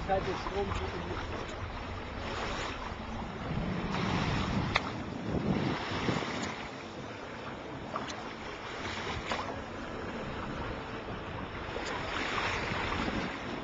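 Wind blows steadily outdoors, buffeting the microphone.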